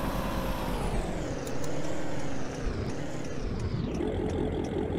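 A car engine winds down as the car slows to a stop.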